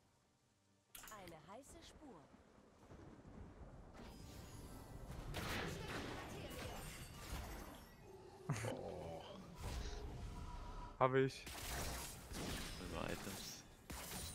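Game sound effects clash and burst.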